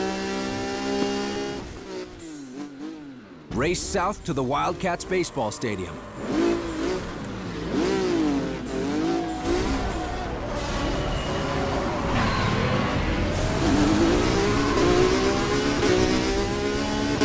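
A car engine roars and revs at high speed.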